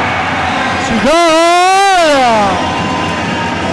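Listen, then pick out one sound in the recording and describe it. A crowd in an echoing sports hall cheers and shouts loudly.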